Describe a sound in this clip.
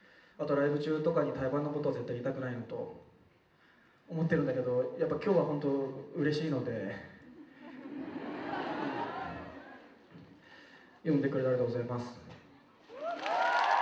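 A young man speaks calmly into a microphone, heard through loudspeakers in a large hall.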